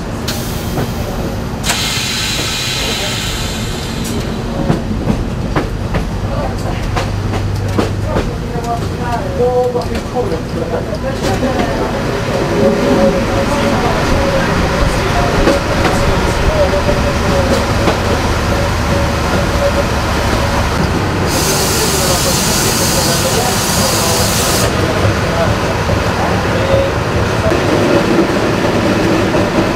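A train rumbles steadily along the rails, growing louder as it enters a tunnel.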